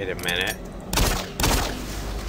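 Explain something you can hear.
A pistol fires loud, echoing shots.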